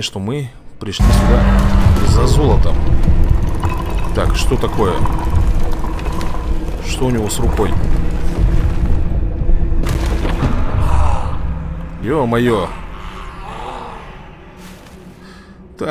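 A deep magical rumble swells and hums steadily, then slowly fades.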